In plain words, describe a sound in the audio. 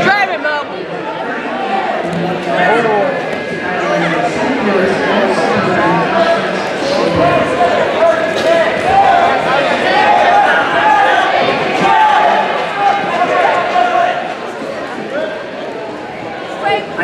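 A crowd of spectators shouts and cheers loudly.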